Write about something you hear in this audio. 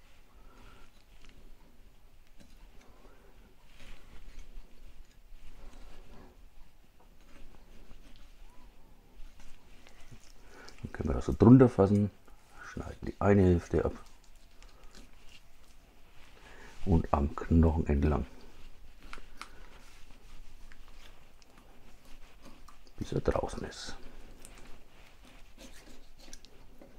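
A knife cuts through raw chicken and taps a wooden board.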